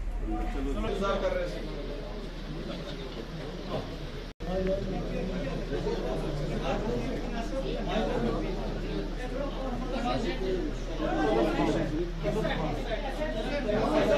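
Several men talk over one another nearby.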